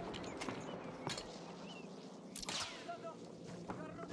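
A rifle bolt is worked back and forth.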